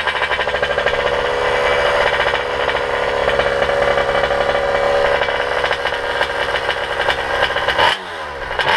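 Bicycle tyres roll and rattle over pavement.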